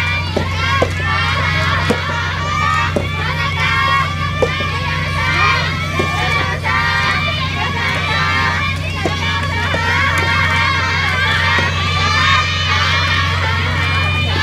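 Tennis balls are struck with sharp pops, off and on in the distance, outdoors.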